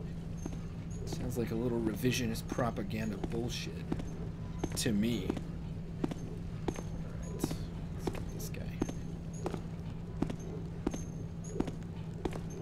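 Footsteps tread steadily on a hard stone floor.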